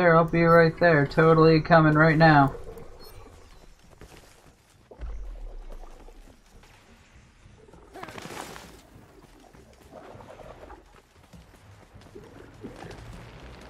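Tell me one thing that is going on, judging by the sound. Footsteps patter quickly on sand.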